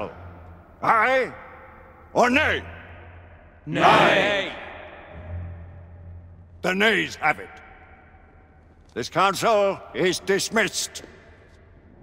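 An elderly man speaks loudly and forcefully in a large echoing hall.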